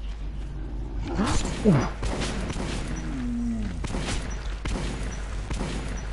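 A monster snarls and growls up close.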